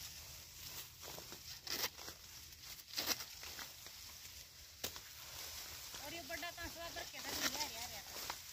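Dry leaves rustle and crackle close by.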